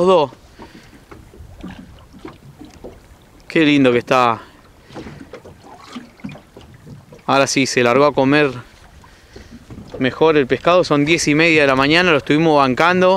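Small waves lap and splash on open water.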